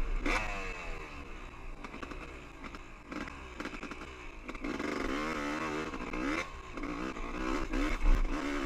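Tyres crunch and bump over a rough dirt trail.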